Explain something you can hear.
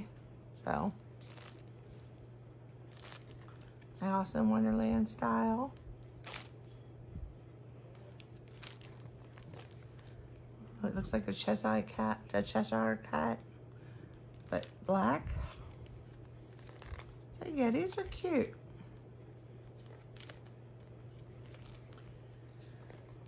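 Small paper cards rustle and tap softly as they are sorted by hand.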